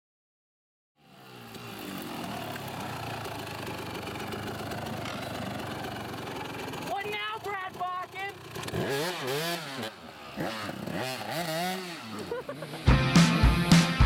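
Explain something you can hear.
A dirt bike engine revs loudly.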